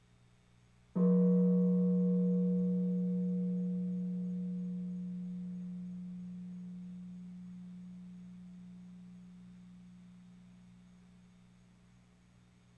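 A large gong is struck once and rings out, slowly fading.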